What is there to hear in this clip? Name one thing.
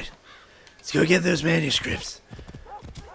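A horse whinnies loudly.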